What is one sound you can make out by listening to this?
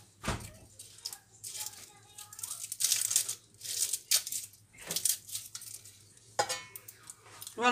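A knife scrapes and slices through an onion skin.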